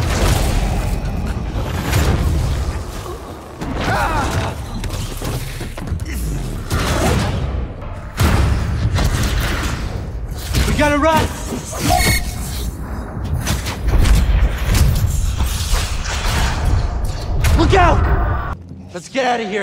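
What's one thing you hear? A deep rumble and roaring noise fills a large echoing hall.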